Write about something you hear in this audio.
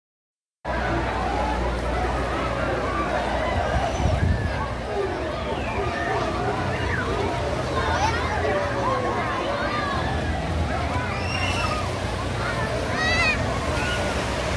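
A large crowd chatters, shouts and shrieks outdoors.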